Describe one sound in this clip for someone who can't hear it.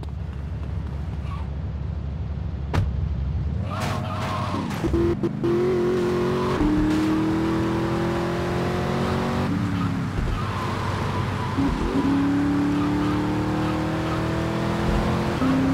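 A car engine hums and revs, speeding up.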